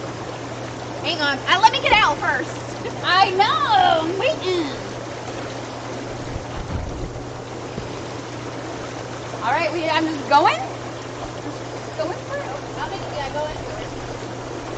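A young woman talks with animation nearby.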